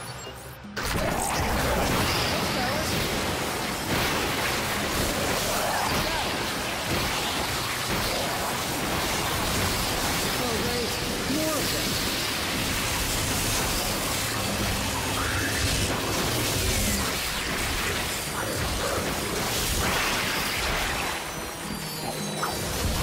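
Energy weapons blast and explode in quick bursts.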